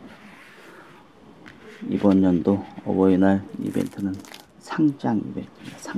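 A stiff cardboard folder is opened and laid flat.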